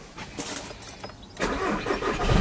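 A car engine starts up.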